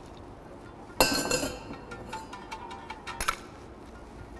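Ice cubes clatter and clink against glass.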